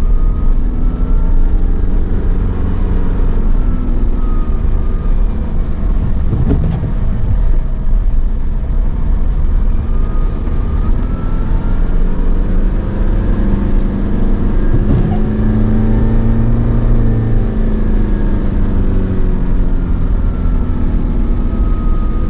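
Tyres crunch and hiss over a snowy road.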